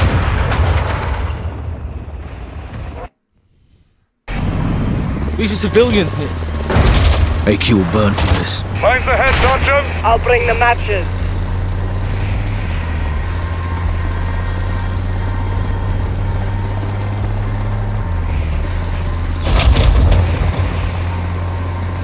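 Heavy truck engines rumble steadily.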